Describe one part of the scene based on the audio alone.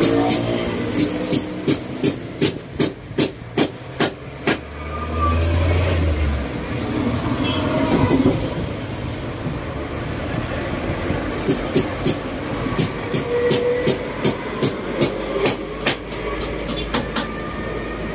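Woven cane creaks and clicks as a man handles a chair.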